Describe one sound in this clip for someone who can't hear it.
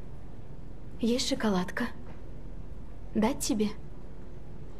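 A young woman speaks softly and calmly, close by.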